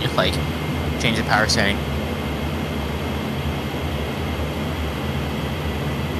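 A jet engine drones steadily in the cockpit.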